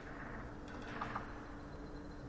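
Snooker balls clack against each other on the table.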